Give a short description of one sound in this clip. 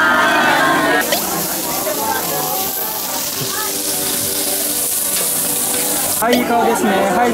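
Food sizzles on a hot grill.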